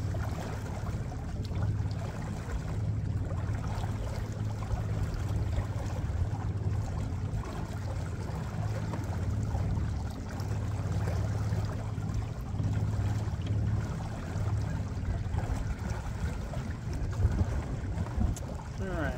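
A boat motor hums steadily at low speed.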